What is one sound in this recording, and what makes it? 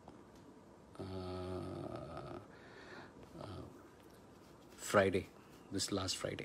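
A middle-aged man speaks calmly and close, as if into a phone.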